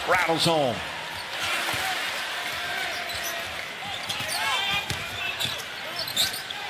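A ball bounces on a wooden court.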